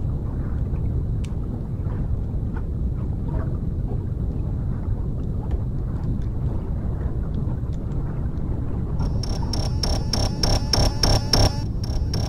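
A deep, steady underwater rumble fills the recording.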